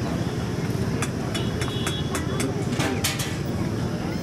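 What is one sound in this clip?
Metal plates and utensils clink.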